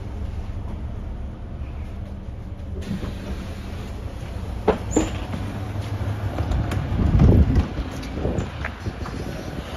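A tram engine hums low and steady nearby.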